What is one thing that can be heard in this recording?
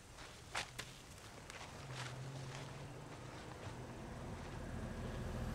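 Leaves and branches rustle as a person pushes through dense undergrowth.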